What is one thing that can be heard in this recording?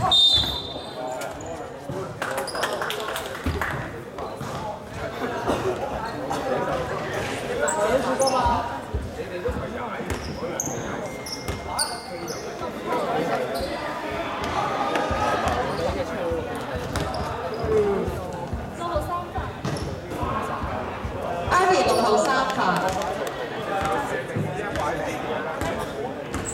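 Players and spectators talk and call out in a large echoing gym.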